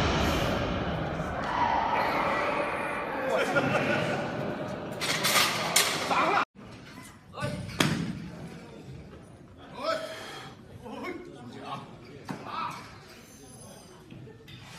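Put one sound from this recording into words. Heavy barbell plates rattle and clank as a weightlifter squats.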